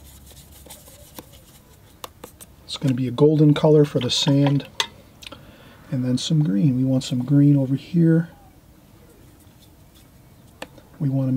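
A paintbrush swishes and dabs in wet paint.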